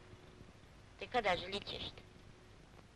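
An elderly woman speaks briefly and quietly.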